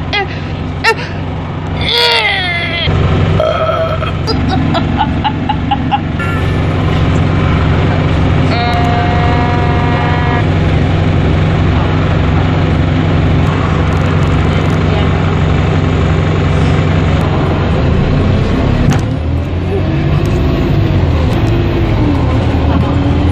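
A bus engine hums steadily throughout.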